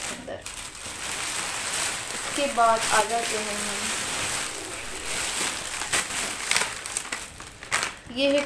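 Plastic bags rustle and crinkle as they are handled close by.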